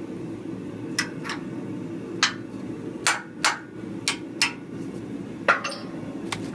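A hammer taps sharply on metal several times.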